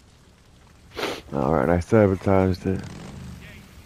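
A motorbike engine starts and revs loudly.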